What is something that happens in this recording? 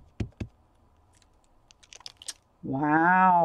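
Plastic packaging crinkles softly close by.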